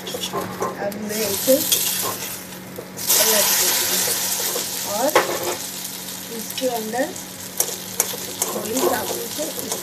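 An omelette sizzles loudly in a hot pan.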